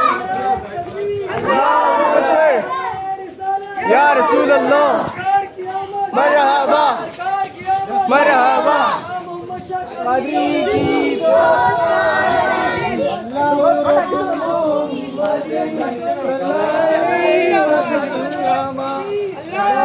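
A group of men chant loudly together in rhythmic, sung phrases outdoors.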